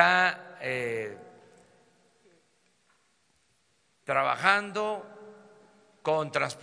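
An elderly man speaks calmly into a microphone, in a large echoing hall.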